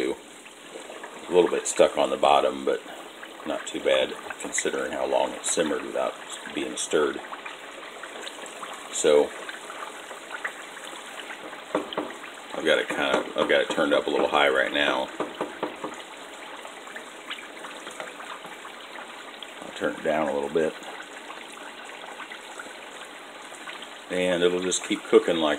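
Water bubbles at a steady rolling boil.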